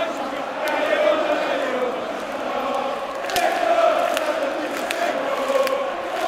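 A large stadium crowd chants loudly in unison, echoing under the roof.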